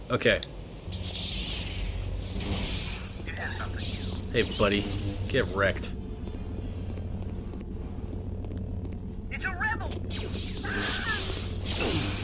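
A lightsaber whooshes as it swings.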